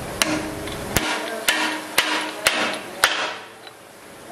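A metal rod scrapes as it slides through a metal tube.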